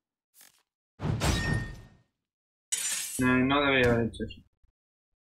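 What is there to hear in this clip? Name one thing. Blades clash with sharp, heavy hits.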